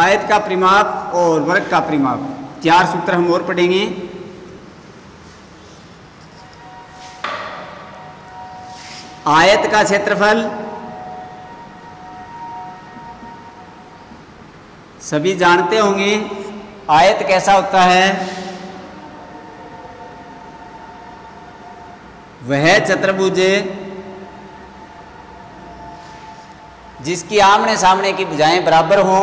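A man speaks loudly and clearly, explaining, with echo in a bare room.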